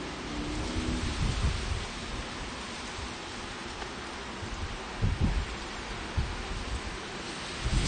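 Wooden hive frames knock and scrape as they are lifted.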